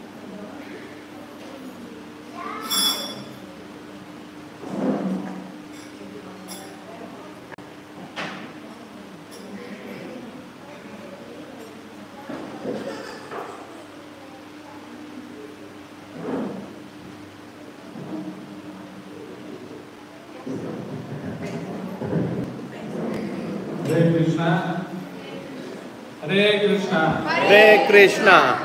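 A group of men and women talk and murmur nearby.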